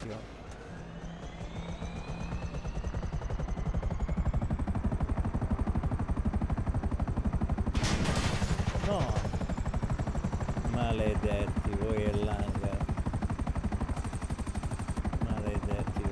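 Helicopter rotor blades thump rapidly and steadily.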